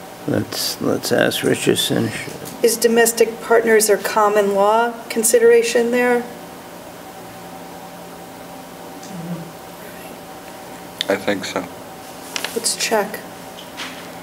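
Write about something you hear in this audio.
A woman speaks calmly nearby, with pauses, in a room with a slight echo.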